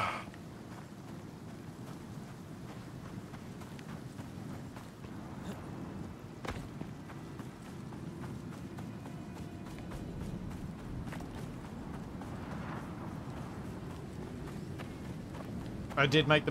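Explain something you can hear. Footsteps crunch steadily over dry ground.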